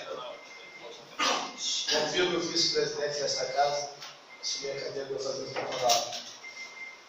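A man speaks into a microphone, heard through a loudspeaker in an echoing room.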